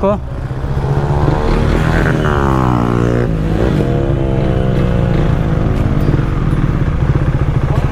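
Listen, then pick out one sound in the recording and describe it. A motorcycle engine hums up close and rises and falls in pitch as it changes gear.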